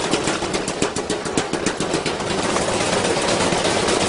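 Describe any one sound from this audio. A washing machine door bursts open with a clatter.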